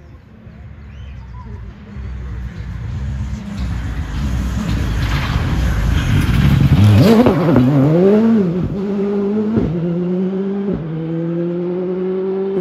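A car engine roars closer, passes close by and revs hard as it speeds away.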